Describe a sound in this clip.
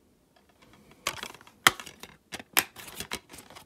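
A plastic case clicks and rattles as it is handled.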